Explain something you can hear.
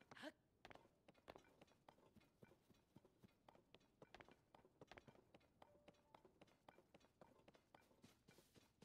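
Footsteps crunch quickly over rock and grass.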